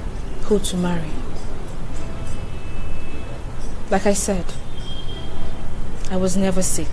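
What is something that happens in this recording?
A woman speaks in short phrases nearby.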